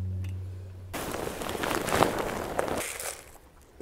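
Potting soil pours from a bag into a pot with a rustling hiss.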